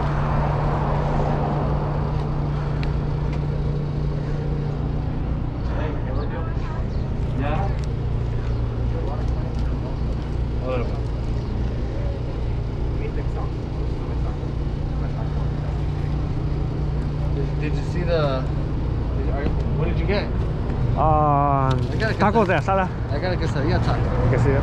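A man talks on a phone nearby.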